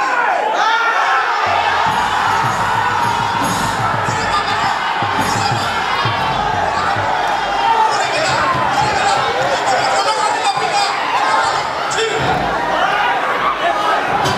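A large crowd cheers and sings.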